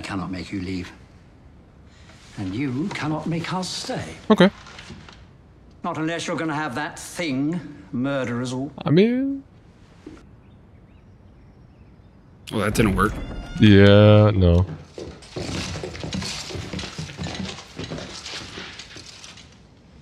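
A young man speaks calmly close to a microphone.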